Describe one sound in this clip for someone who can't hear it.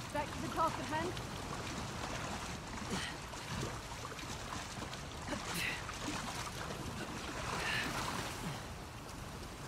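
Water splashes and churns as a swimmer moves through it.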